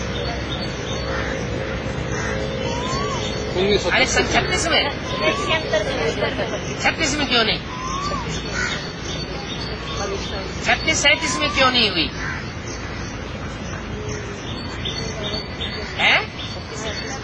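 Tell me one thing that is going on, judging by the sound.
An elderly man speaks calmly close by, outdoors.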